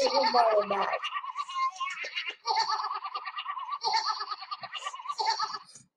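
A young girl laughs loudly and shrieks.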